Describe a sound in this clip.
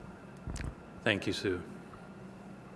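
A man speaks briefly.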